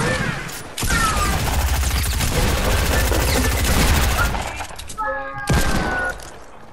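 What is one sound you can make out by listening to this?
A gun fires in loud, rapid shots.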